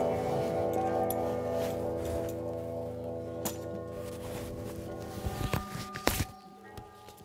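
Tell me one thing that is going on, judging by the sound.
A guitar is strummed.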